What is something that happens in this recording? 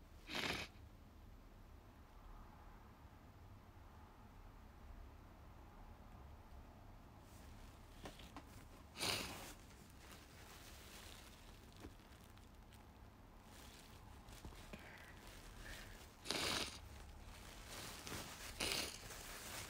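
Hair rustles softly, very close by, in short bursts.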